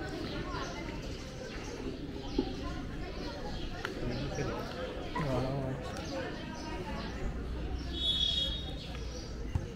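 A small group of spectators chatters and calls out close by, outdoors.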